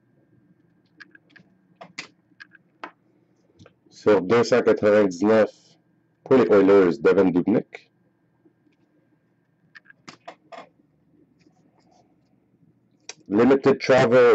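Trading cards rustle and slide softly between hands.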